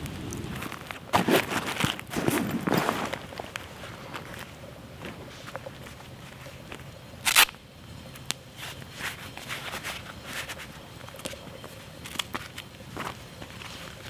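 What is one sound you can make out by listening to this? Fabric rustles as a backpack is rummaged through.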